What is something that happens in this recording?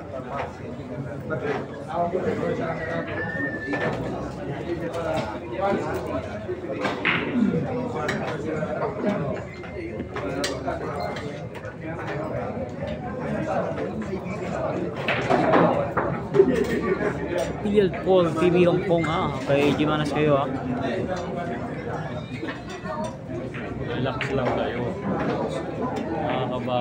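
A crowd of men and women chatters loudly in a busy room.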